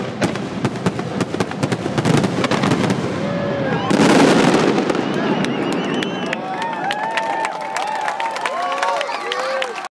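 Fireworks bang and crackle in rapid bursts outdoors.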